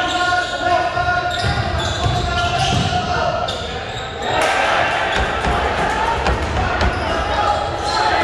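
A crowd of spectators murmurs and cheers.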